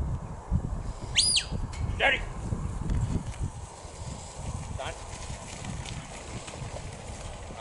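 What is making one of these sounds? A dog pants as it runs.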